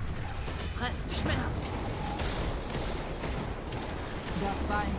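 Magic spells crackle and boom with bursts of lightning.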